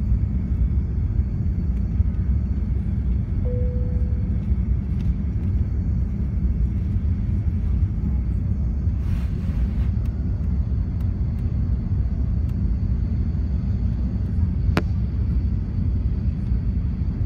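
The engines of a four-engine jet airliner roar in a low, steady rumble, heard from inside the cabin during the climb.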